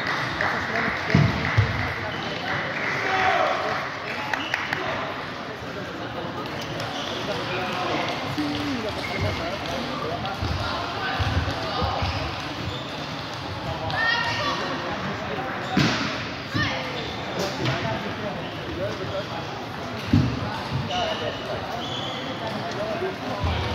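A crowd of players and onlookers chatter in the background.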